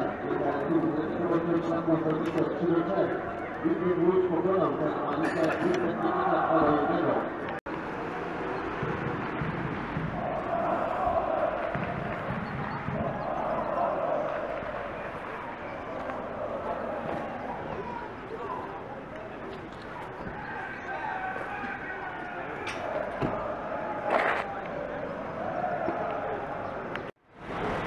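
Several men talk among themselves nearby, outdoors.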